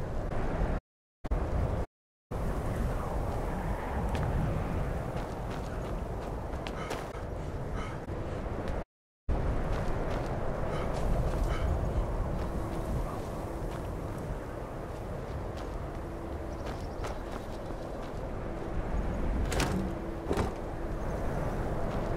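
Wind blows steadily outdoors in a snowstorm.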